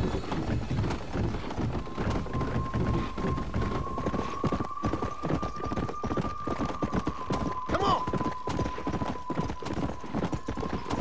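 A horse gallops steadily over a dirt trail.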